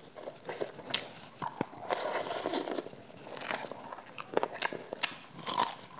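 A young woman bites into crunchy fried chicken.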